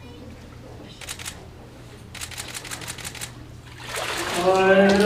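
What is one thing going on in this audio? Water splashes as a person is dipped under and lifted out.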